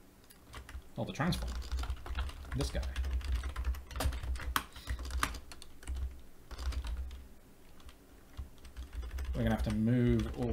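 Computer keys clatter as a man types quickly.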